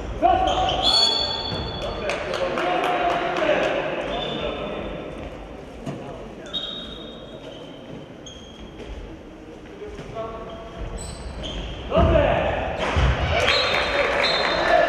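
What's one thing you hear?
A referee's whistle blows short sharp blasts.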